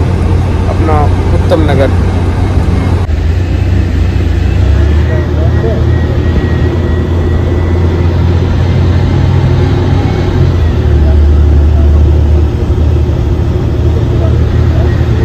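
Tyres roar on the road as the car drives along.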